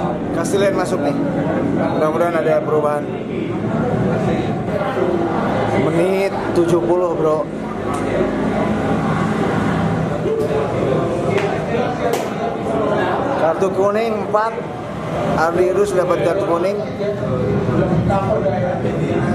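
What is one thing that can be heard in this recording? A middle-aged man talks close to a microphone, calmly and with pauses.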